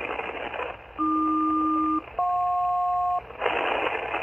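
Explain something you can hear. A radio receiver gives out two short steady tones.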